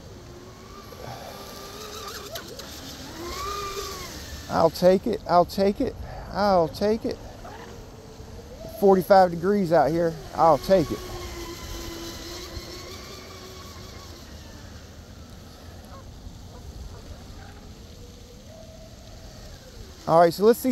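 A toy motorboat's small motor whines as it speeds across the water.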